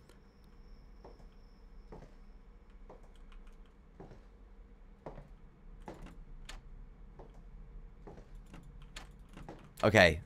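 Footsteps thud softly on a wooden floor.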